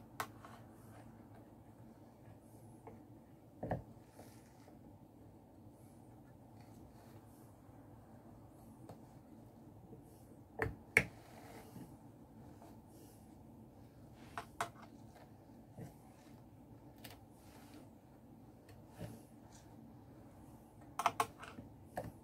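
A drum carder's wooden rollers turn with a soft, steady whirring.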